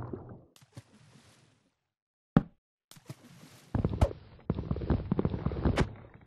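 Water splashes and bubbles in short bursts as a game character swims.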